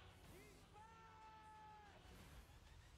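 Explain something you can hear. A man sings out a long, loud note.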